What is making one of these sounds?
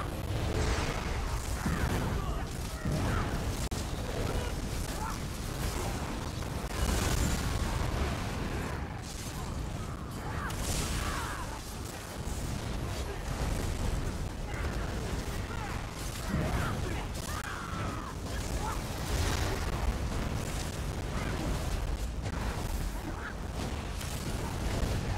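Magic spells crackle and boom in a fast-paced battle.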